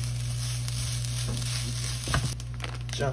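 Rice sizzles in a hot pan as a spatula stirs it.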